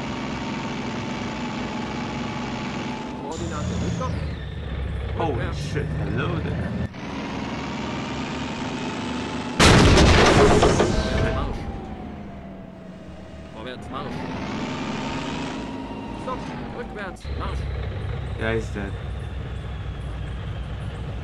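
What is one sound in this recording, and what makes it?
A tank engine rumbles and whines steadily.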